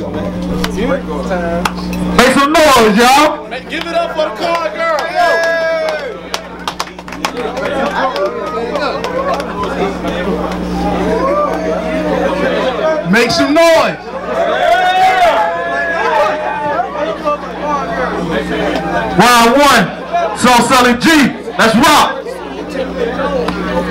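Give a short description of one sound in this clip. A young man raps loudly into a microphone, echoing through loudspeakers.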